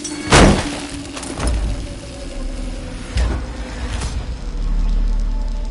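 Electric sparks crackle and snap.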